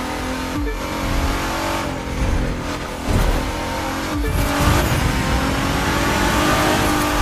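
A racing car engine roars and revs, dropping briefly at each gear change.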